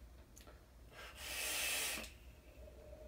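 A man exhales a long breath of vapour with a soft hiss.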